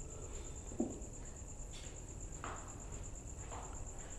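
Footsteps walk away across a hard floor.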